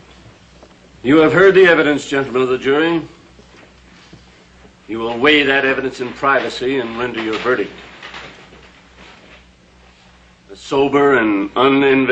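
A man speaks firmly and loudly in a room.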